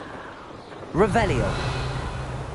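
A sudden sharp whoosh sweeps past.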